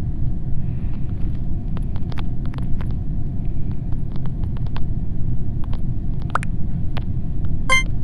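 Soft taps of a touch keyboard click quickly.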